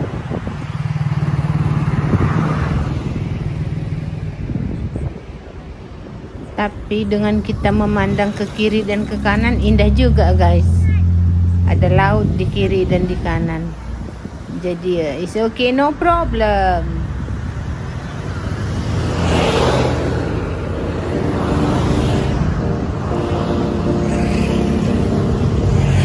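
Car engines hum steadily in passing traffic.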